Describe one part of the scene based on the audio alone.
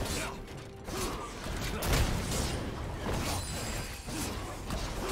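Fantasy game sound effects of blasts and hits ring out in quick bursts.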